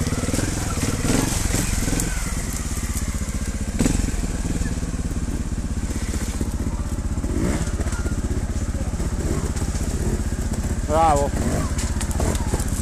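A motorbike engine idles close by with a steady, throbbing putter.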